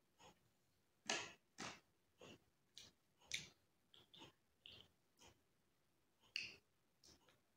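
A young woman crunches and chews food close by.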